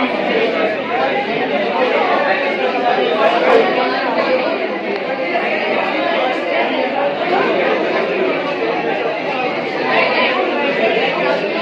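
A crowd of young men and women chatter and talk over one another nearby.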